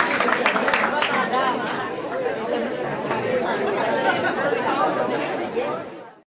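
A crowd of men and women chatter and murmur.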